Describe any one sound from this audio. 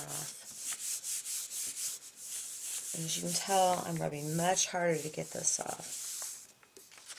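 Hands rub firmly across paper with a soft swishing.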